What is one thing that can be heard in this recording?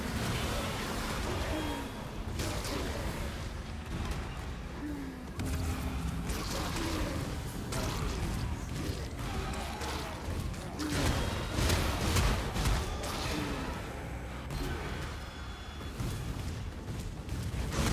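Game spells crackle and burst with magical effects.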